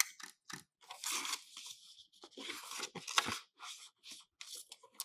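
A paper sheet rustles.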